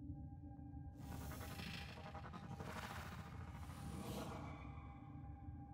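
An energy blast whooshes loudly, then fades.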